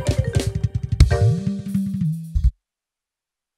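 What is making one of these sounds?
A band plays loud music with a driving beat.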